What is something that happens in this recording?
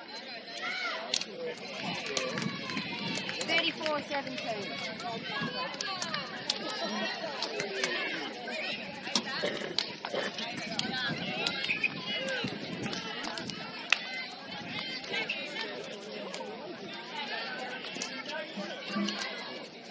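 Young women clap their hands.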